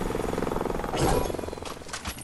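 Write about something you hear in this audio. A heavy thud sounds as something lands on wooden boards.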